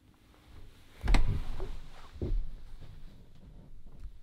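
Footsteps thud on a floor as a man walks away.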